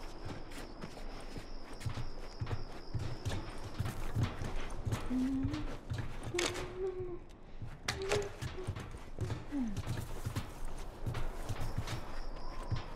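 Footsteps crunch steadily over grass and gravel.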